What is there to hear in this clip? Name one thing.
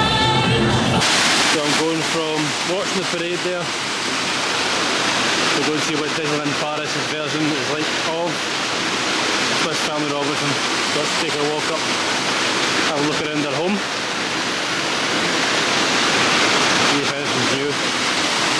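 A waterfall splashes and rushes steadily close by.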